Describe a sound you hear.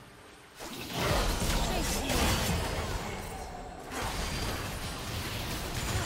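Magic blasts whoosh and crackle in a fast video game fight.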